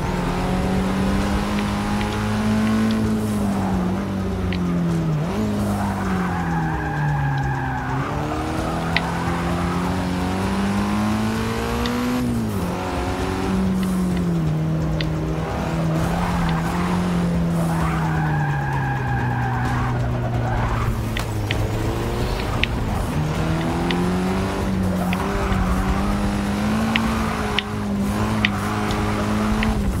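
A car engine revs hard, rising and falling as gears shift.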